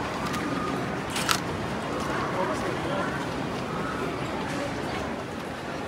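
Paper rustles in hands.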